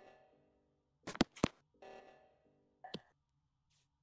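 A video game chimes as a task completes.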